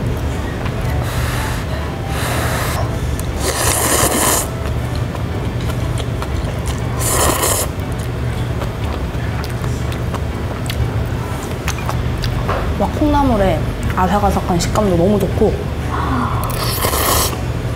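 A young woman slurps noodles loudly, close by.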